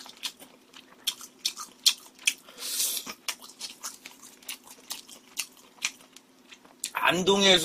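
A young man chews and slurps food loudly and close to a microphone.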